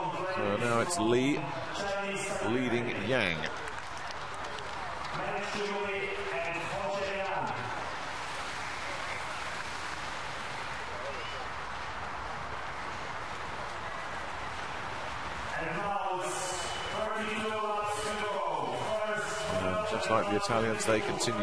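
Many inline skate wheels roll and whir on a hard track.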